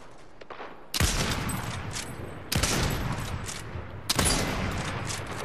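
A sniper rifle fires several shots.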